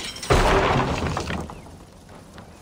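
A loud blast bursts and rumbles away.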